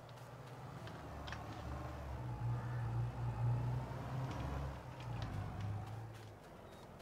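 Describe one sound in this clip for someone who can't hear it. A tractor engine rumbles in the distance.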